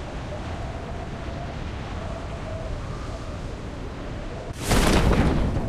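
Wind rushes loudly during a freefall.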